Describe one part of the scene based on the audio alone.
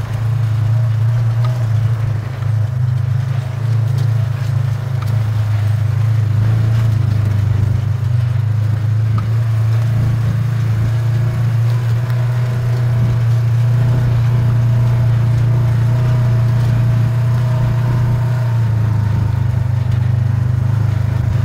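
An off-road vehicle's engine drones steadily at a low pitch.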